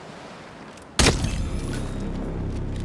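A single gunshot cracks and rings out.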